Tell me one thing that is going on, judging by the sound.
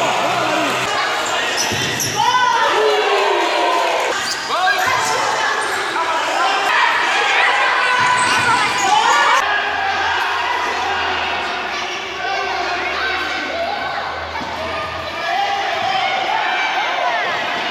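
A crowd of spectators shouts and cheers in a large echoing hall.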